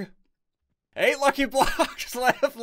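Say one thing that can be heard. A young man laughs close to a headset microphone.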